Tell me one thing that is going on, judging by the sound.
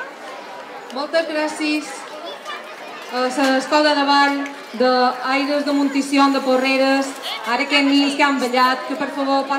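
Lively folk music plays through a loudspeaker.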